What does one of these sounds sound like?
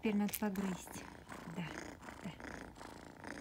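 A kitten meows loudly close by.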